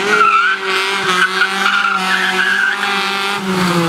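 Tyres squeal on asphalt.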